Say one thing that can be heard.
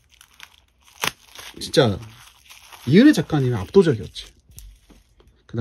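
Hands handle a stiff card with a soft rustle.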